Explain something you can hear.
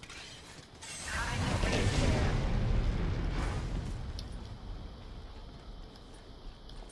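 A zipline whirs and rushes as a character slides along it.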